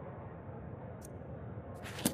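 A soft menu click sounds once.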